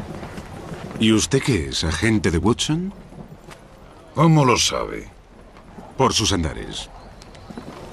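A second man answers in a low voice, close by.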